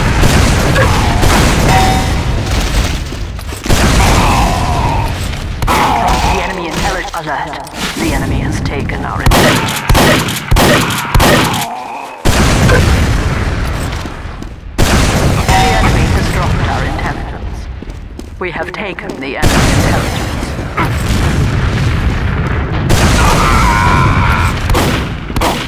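Rockets fire and explode with loud booming blasts.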